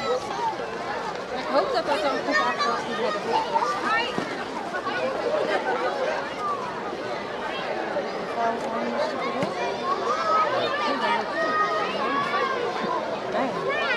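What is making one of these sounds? A crowd of children and adults chatter and call out outdoors.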